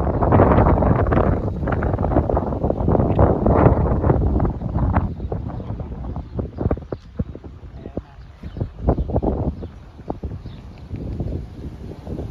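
A flock of pigeons flaps its wings overhead.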